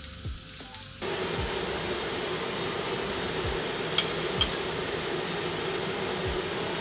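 Egg mixture sizzles in a hot frying pan.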